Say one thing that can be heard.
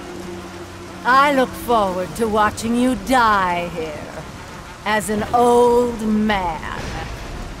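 A woman speaks in a low, menacing voice.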